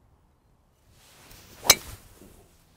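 A golf club whooshes through the air.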